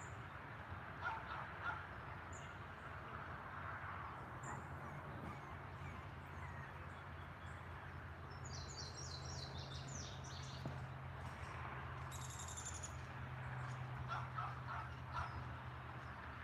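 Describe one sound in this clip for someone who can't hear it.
Small puppies whimper and squeak softly outdoors.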